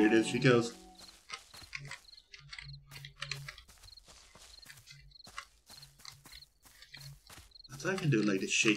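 Soft footsteps patter steadily on grass.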